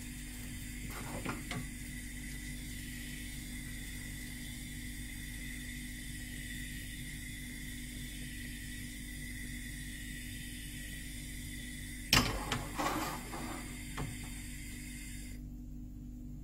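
A gas burner hisses steadily.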